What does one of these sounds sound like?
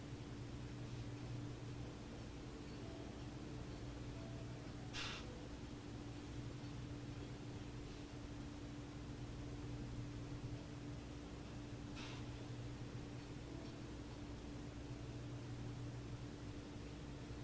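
A middle-aged woman breathes heavily in her sleep close by.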